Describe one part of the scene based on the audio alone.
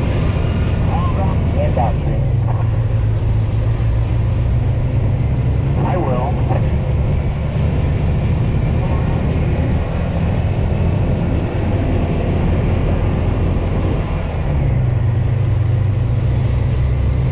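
A heavy truck engine rumbles steadily from inside the cab.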